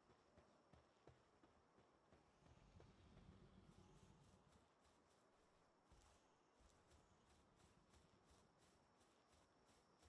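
Quick footsteps patter on dirt and stone.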